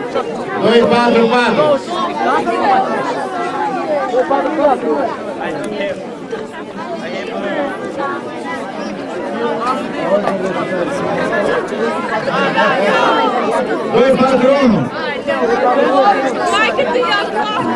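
A crowd of children and adults chatters in the background.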